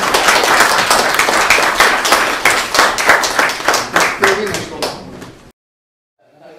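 A small group of people claps and applauds.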